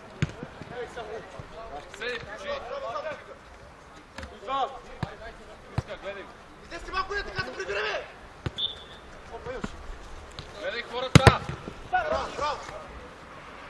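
Men shout and call out to each other across an open field.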